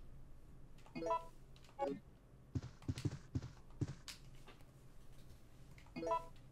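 A menu chime beeps.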